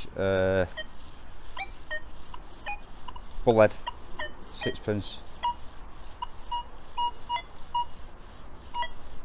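A metal detector gives a long tone, then short, quick beeps.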